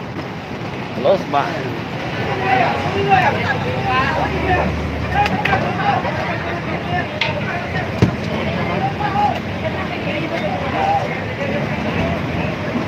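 Several men talk at once close by, outdoors.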